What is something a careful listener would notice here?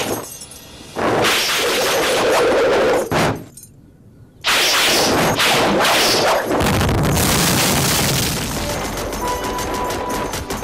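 A whip whooshes and cracks through the air.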